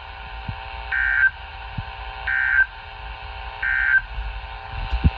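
A radio sounds three short, high alert beeps.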